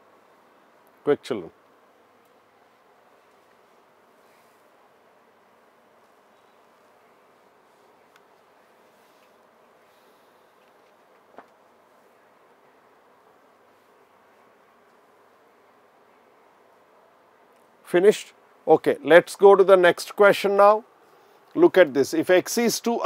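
A man speaks calmly and clearly, as if teaching, close to a microphone.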